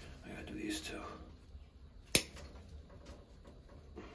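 Wire cutters snip through a wire with a sharp click.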